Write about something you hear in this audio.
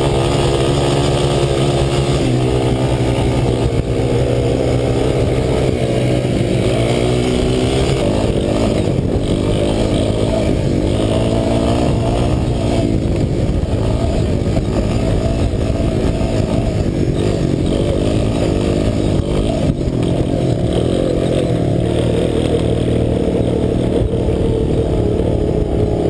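Quad bike engines rev and whine nearby.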